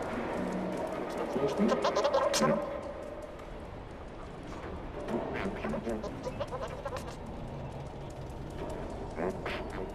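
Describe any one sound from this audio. A cat's paws pad softly along pavement.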